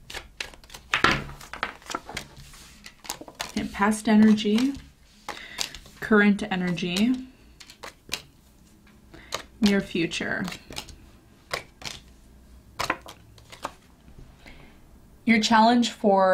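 Playing cards shuffle and flick against each other.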